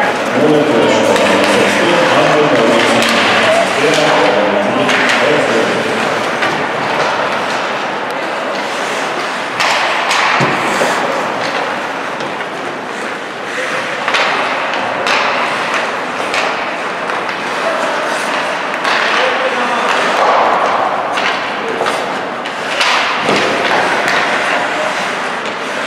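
Hockey sticks clack against a puck and the ice.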